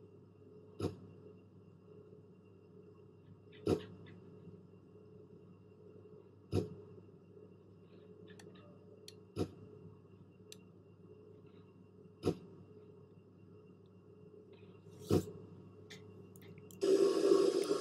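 A low steady hum fills an aircraft cockpit.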